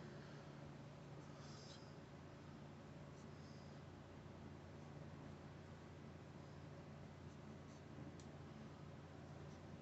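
A marker squeaks softly as it writes on metal.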